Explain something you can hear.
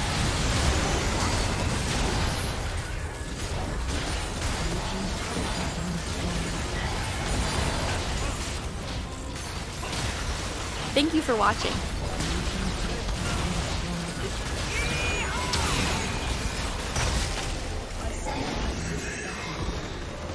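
Game spell effects crackle and blast during a fight.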